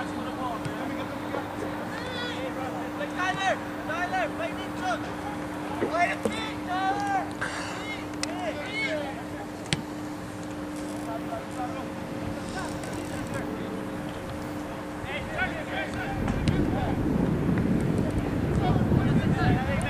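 Players shout and call out across an open sports field.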